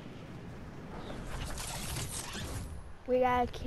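A glider snaps open with a rushing whoosh.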